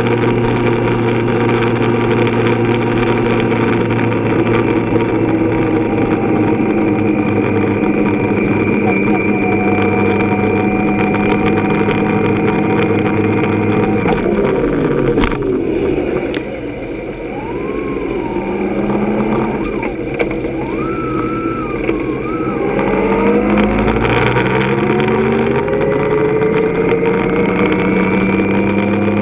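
A motorcycle engine hums steadily while riding, its pitch dropping as it slows and rising again as it speeds up.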